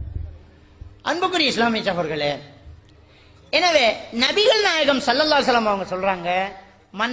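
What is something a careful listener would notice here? A man speaks loudly and with animation into a microphone, heard through a loudspeaker.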